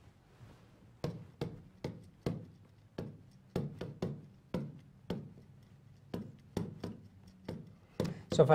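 A pen taps and scratches against a board in quick strokes.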